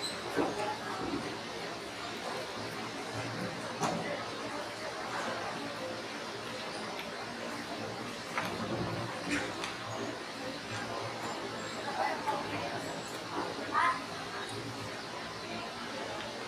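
A crowd murmurs quietly.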